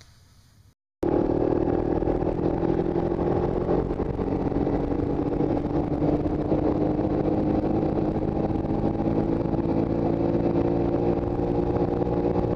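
A snowmobile engine roars steadily up close.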